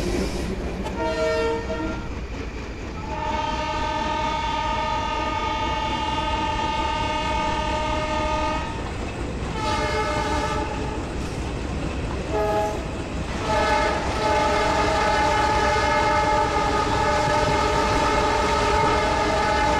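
A train horn blares in long repeated blasts.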